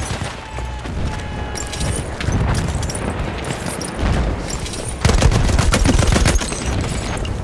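A machine gun fires rapid bursts close by.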